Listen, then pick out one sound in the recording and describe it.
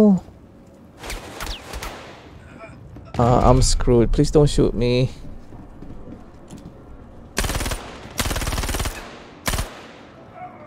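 Gunfire bursts from a game.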